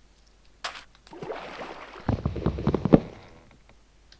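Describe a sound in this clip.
Water splashes as someone wades and swims.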